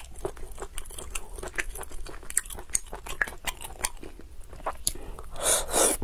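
Snail shells crack and click close to a microphone.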